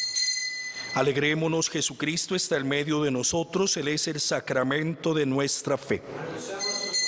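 A man chants through a microphone.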